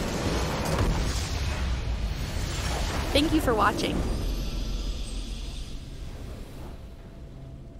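A huge explosion booms and rumbles, then fades.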